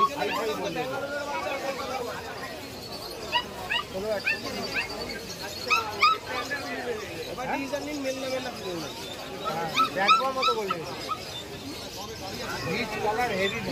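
A crowd of men and women chatter nearby in a busy outdoor crowd.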